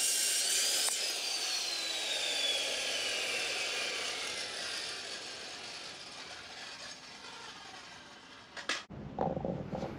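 A circular saw spins down with a falling whine.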